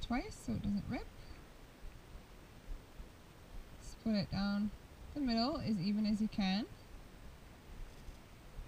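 Hair rustles softly as it is braided by hand.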